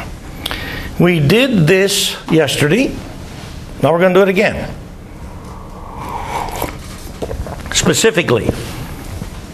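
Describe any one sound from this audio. An elderly man speaks loudly in short bursts, heard in an echoing room.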